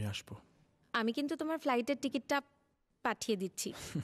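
A woman talks on a phone.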